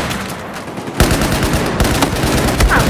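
A loud explosion booms.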